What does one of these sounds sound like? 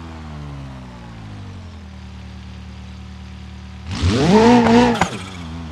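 A simulated car engine hums, then revs up sharply.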